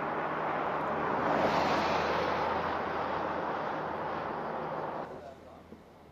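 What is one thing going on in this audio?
A van drives past on an asphalt road.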